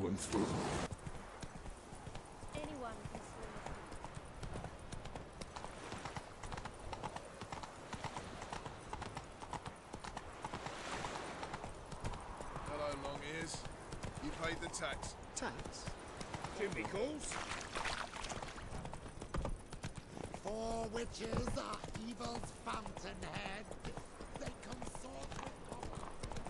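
A horse's hooves clop steadily on stone and dirt.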